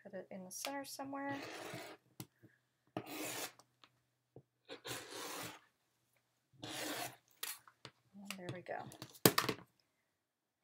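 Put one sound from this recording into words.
A rotary cutter slices through fabric on a cutting mat in short rasping strokes.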